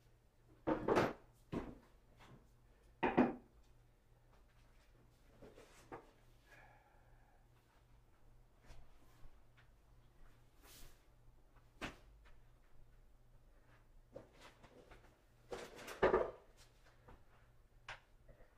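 Cardboard boxes thump and scrape as they are moved around.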